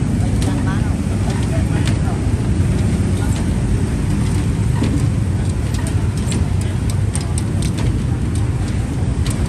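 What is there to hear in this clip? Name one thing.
Metal tongs and utensils clink and clatter.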